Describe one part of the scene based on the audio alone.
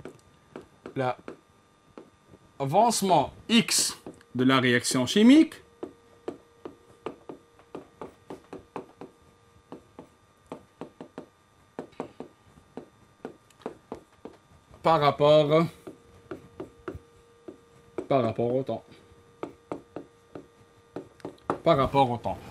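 A pen taps and scrapes on a board while writing.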